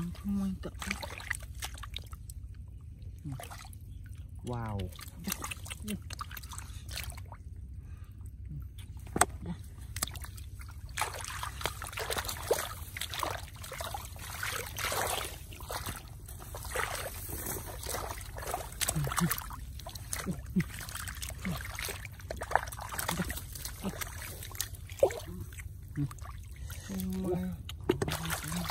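Water splashes and sloshes as hands dig in shallow muddy water.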